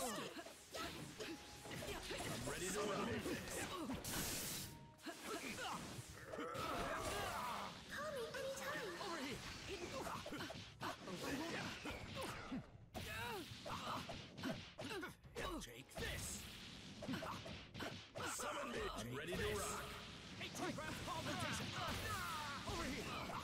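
Crackling energy blasts hiss and buzz.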